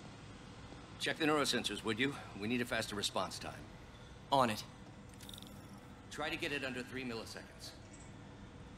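An older man speaks calmly, heard close.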